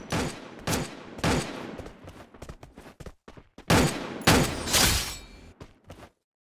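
Gunshots crack loudly in short bursts.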